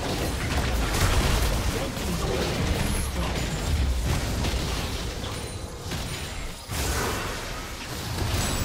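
Video game spell effects crash, whoosh and clang in a hectic battle.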